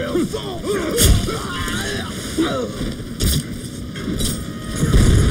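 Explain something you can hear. Blades clash and strike in quick hits.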